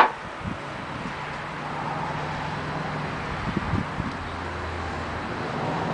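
A metal tool strikes a metal bolt with sharp knocks.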